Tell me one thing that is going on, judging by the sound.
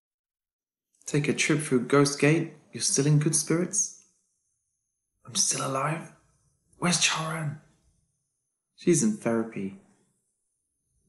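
Another young man speaks calmly, close by.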